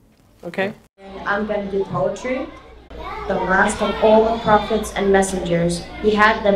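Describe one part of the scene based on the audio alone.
A boy speaks into a microphone through a loudspeaker in a room.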